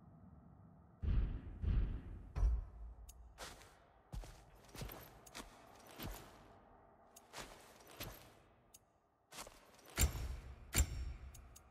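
Short game menu clicks and whooshes sound as options change.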